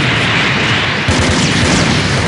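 A beam weapon fires with a loud blast.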